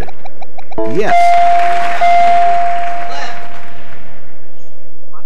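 An electronic chime rings as a puzzle letter lights up.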